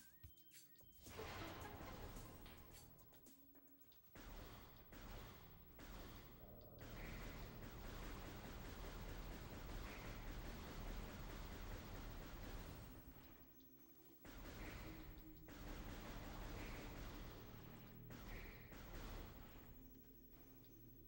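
Energy blasts fire and explode in rapid bursts.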